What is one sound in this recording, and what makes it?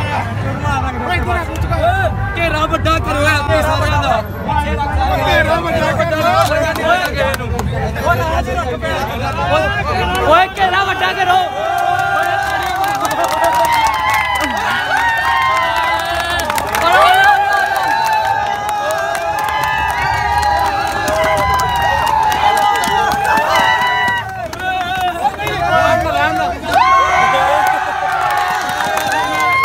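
A crowd of men shouts and cheers excitedly close by.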